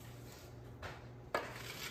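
Sugar pours into a metal pan.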